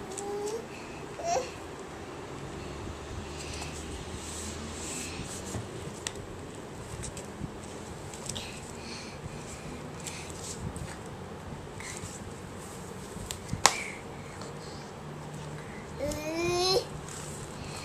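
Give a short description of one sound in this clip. A toddler babbles close by.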